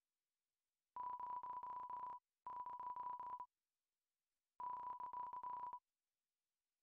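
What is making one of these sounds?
Quick, high, thin beeps tick in short runs as game text types out.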